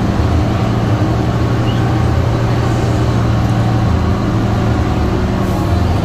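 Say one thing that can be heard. Tyres roar on the road as the bus drives along.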